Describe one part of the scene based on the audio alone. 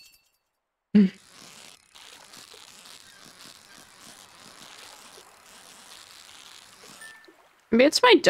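A fishing reel whirs steadily as a line is wound in.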